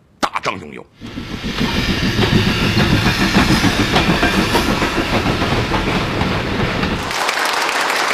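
A steam train rumbles past along the tracks.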